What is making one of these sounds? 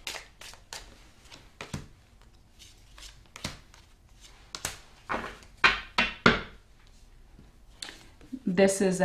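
Playing cards slide, tap and shuffle close by.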